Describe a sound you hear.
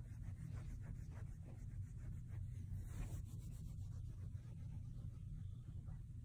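A kitten's paws rustle softly on a duvet.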